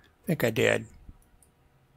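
A man speaks briefly and with animation close to a microphone.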